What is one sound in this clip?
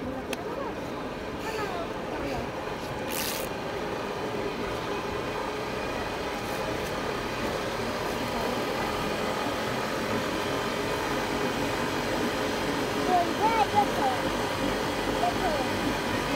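A cotton candy machine hums and whirs steadily.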